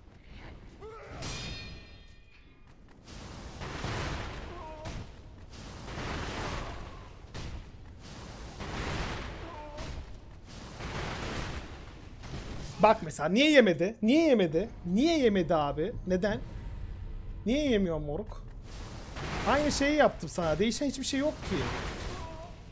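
Blades swing through the air with heavy whooshing rushes.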